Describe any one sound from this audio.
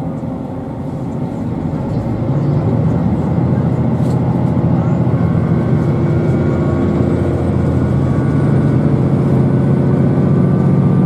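A train rumbles steadily along the tracks, its low hum growing louder.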